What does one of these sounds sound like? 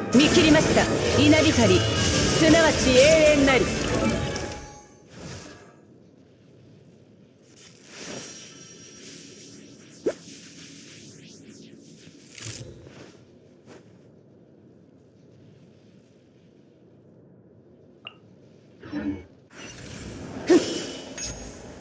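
Electric blasts crackle and boom loudly in a fight.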